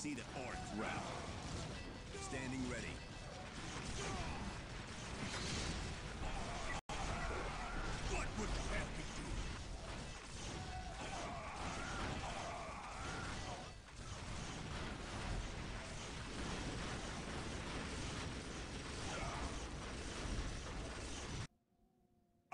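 Gunfire rattles and explosions boom in a battle.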